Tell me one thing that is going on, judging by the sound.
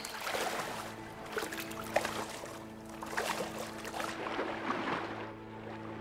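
Water splashes as a person wades and swims.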